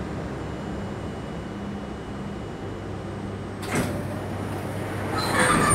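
A subway train hums steadily.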